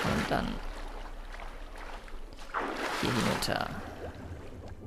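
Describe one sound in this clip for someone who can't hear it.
Water splashes as a swimmer surfaces and dives back under.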